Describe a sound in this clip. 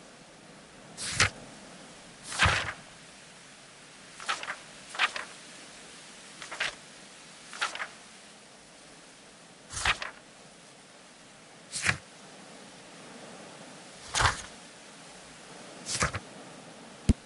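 Paper pages of a book turn with a swish.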